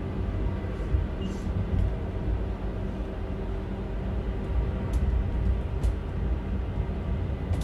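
A windscreen wiper sweeps and squeaks across the glass.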